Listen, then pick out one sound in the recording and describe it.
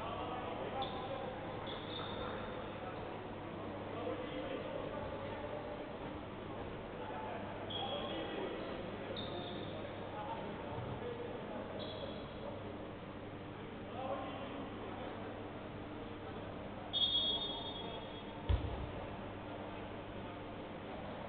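A crowd murmurs and chatters in an echoing gym.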